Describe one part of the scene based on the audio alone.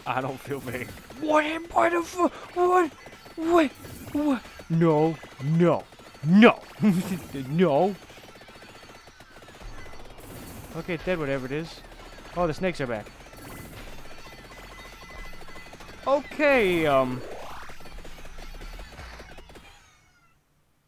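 Electronic game sound effects chirp and blip rapidly.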